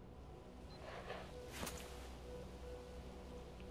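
A rifle is drawn and raised with a metallic clack.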